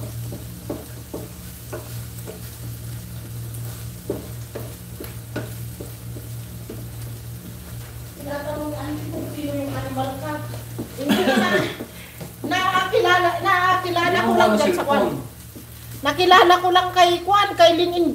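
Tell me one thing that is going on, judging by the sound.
A wooden spatula scrapes and taps against a frying pan.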